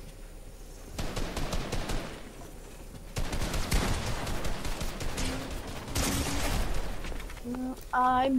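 Video game gunshots crack in quick bursts.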